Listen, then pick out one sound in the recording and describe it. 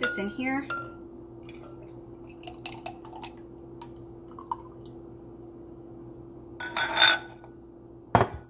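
Liquid pours into a glass jar over ice.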